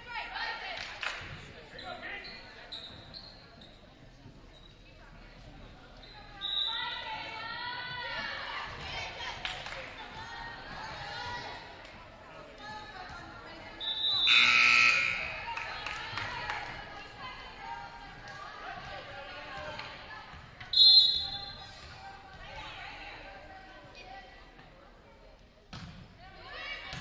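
Young women shout and call to each other in a large echoing gym.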